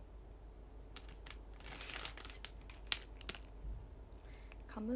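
A plastic snack packet crinkles close by.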